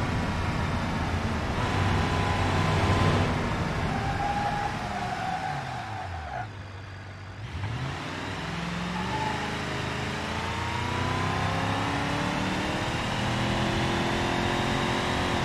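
A pickup truck engine revs, slows down and speeds up again.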